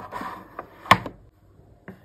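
Plastic items clack and rattle as a hand handles them.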